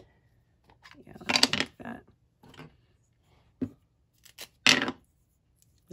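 A plastic lid clicks open and shut.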